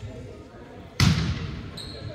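A volleyball is struck with a hard slap.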